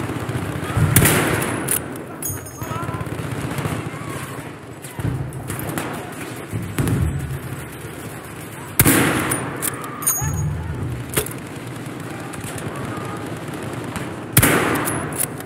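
A rifle fires with a loud, echoing crack.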